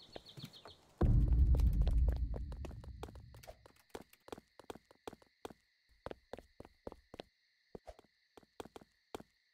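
Game footsteps patter quickly on the ground.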